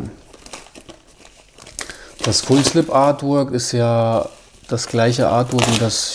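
Plastic wrapping crinkles and rustles close by.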